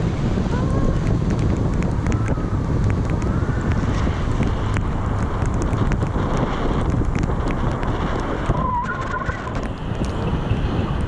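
Strong wind roars steadily past the microphone.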